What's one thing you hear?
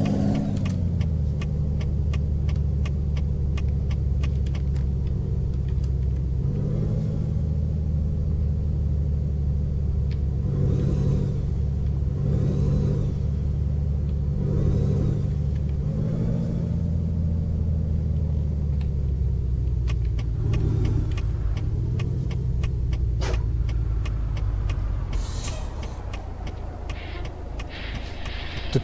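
A truck's diesel engine rumbles steadily, rising and falling as it shifts gears.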